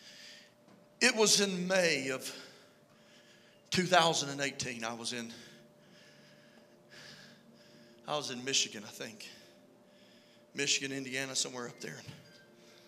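A man speaks emphatically into a microphone, heard through a loudspeaker in a reverberant hall.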